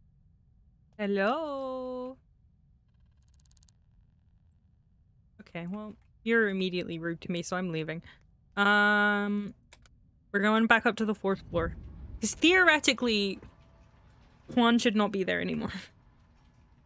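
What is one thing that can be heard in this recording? A woman talks with animation into a microphone.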